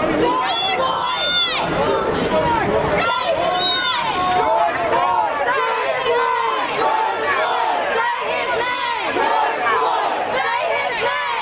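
A large crowd of men and women chants loudly outdoors.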